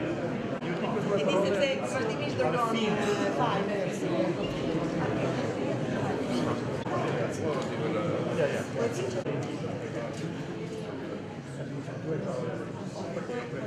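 Several men and a woman chat and greet each other nearby.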